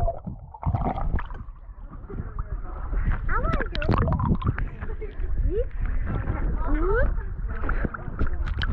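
Water splashes and sloshes close by.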